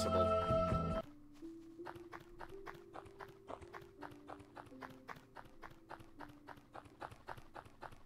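Simple game music plays a plain tune.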